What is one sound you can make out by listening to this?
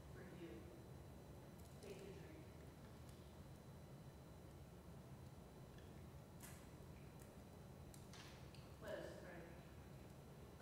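A man speaks quietly over a loudspeaker in a large echoing hall.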